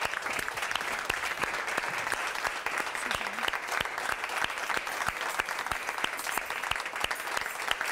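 Tambourines jingle and thump.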